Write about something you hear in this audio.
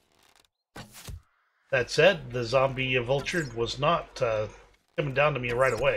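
A bowstring twangs as an arrow is shot.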